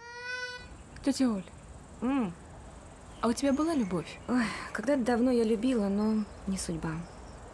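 A woman talks outdoors a short distance away.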